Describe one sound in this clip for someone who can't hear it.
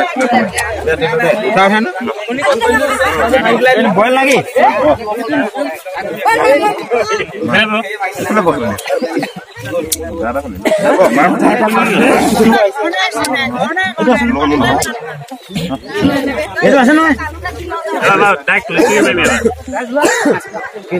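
Several young men talk and laugh with animation close by.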